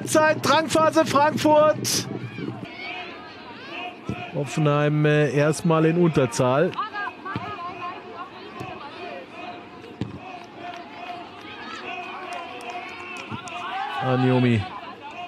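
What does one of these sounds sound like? A crowd in a stadium cheers and chants loudly.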